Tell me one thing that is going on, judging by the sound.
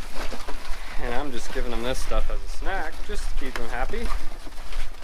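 Pigs grunt and squeal close by.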